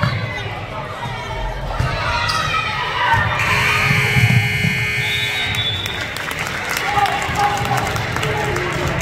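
Young girls shout and call out to each other.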